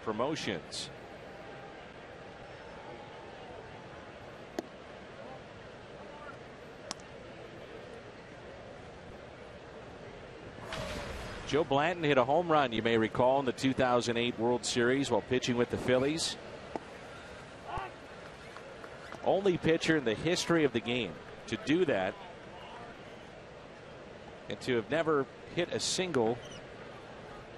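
A stadium crowd murmurs in the background.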